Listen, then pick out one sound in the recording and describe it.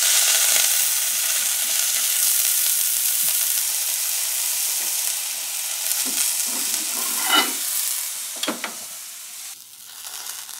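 Food sizzles loudly in a hot frying pan.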